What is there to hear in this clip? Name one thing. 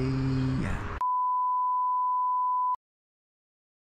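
A steady high-pitched test tone beeps, then cuts off.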